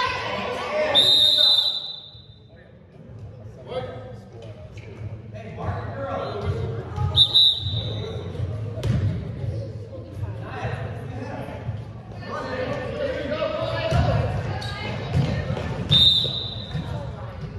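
A referee's whistle blows sharply several times in a large echoing hall.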